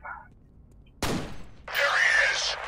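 A gunshot rings out sharply in an echoing space.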